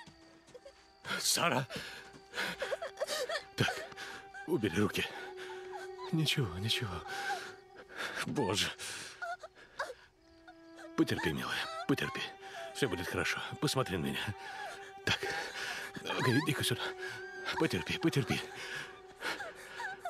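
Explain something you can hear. A man speaks urgently and anxiously, close by.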